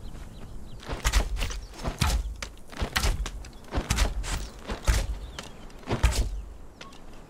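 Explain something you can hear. A sword swishes and strikes in quick blows.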